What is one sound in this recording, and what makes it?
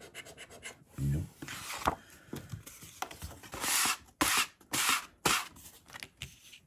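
A card rustles and flaps as it is turned over.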